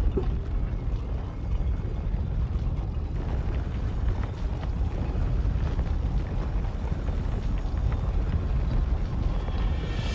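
Heavy stone doors grind slowly open with a deep rumble.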